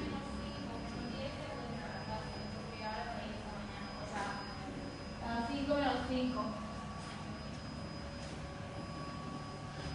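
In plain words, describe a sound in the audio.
A stair lift motor hums steadily as the seat glides along its rail.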